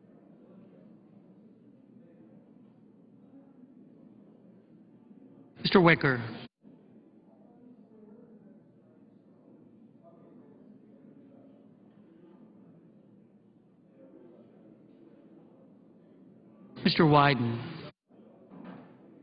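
Men and women murmur and chat quietly in a large room.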